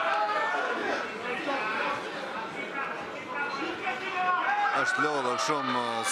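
A crowd of men and women chatter and shout in an echoing hall.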